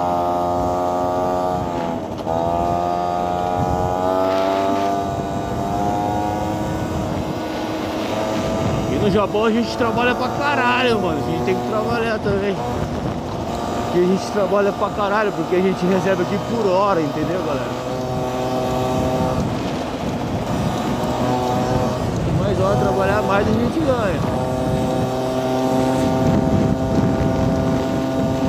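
A motorbike engine hums steadily and changes pitch as the bike speeds up and slows down.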